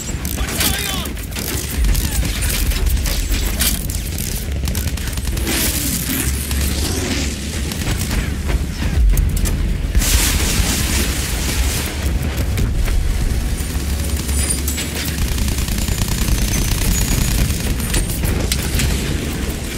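Anti-aircraft shells burst with dull booms.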